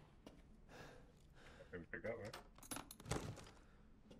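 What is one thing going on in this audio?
A wooden drawer slides open.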